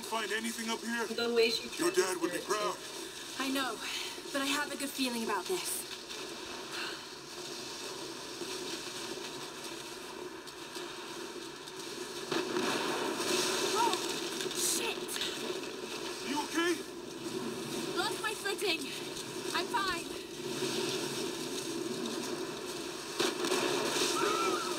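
Wind blows steadily across an open mountainside.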